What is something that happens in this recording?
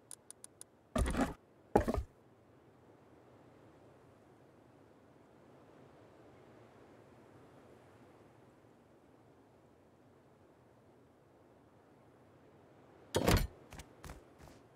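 A heavy object thuds down into place.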